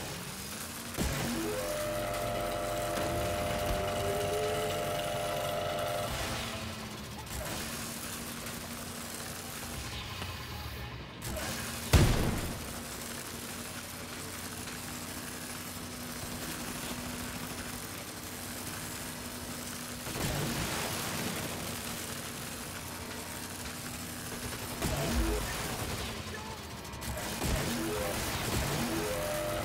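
Heavy gunfire blasts in short bursts.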